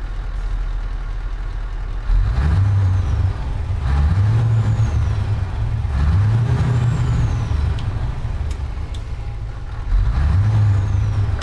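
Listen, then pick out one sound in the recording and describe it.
A truck engine idles with a deep, steady rumble.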